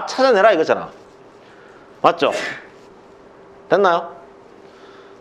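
A man speaks through a microphone in short bursts, lecturing calmly.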